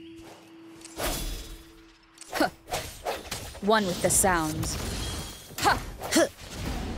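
Sword slashes and impacts ring out in a fight.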